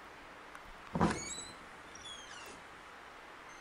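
A wooden door clicks and creaks open.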